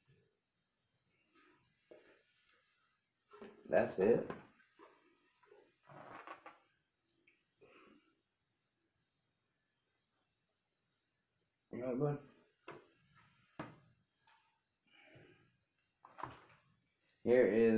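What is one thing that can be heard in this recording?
Cardboard pieces rustle and tap on a wooden table.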